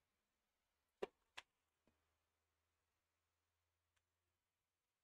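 A tennis racket strikes a ball with a sharp pop.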